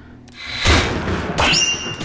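Electricity crackles and zaps in short bursts.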